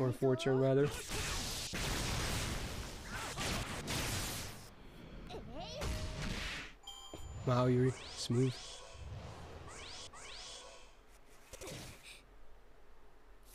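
Video game attack effects whoosh and crash.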